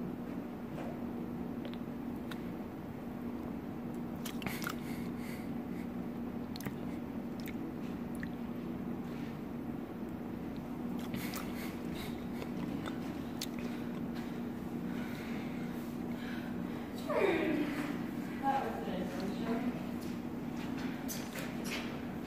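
A young man gulps a drink from a can.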